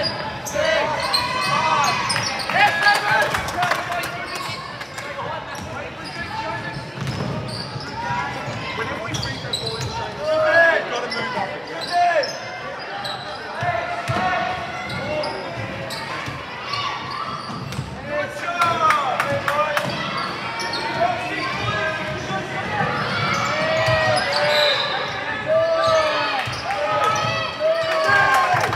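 Spectators chatter and call out throughout the hall.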